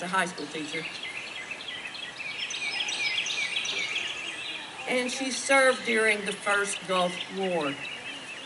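A woman speaks slowly over a loudspeaker outdoors.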